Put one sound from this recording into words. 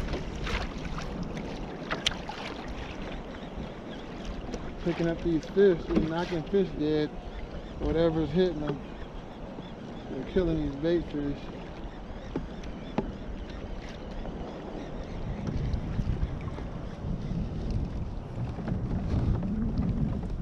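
A fishing reel clicks as a man winds in line.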